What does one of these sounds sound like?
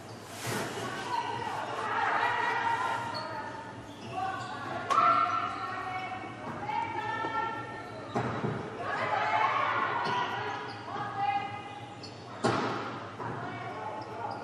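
Young women players call out and shout to each other.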